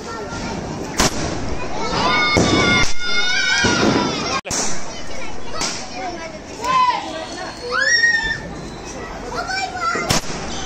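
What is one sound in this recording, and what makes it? Fireworks bang loudly.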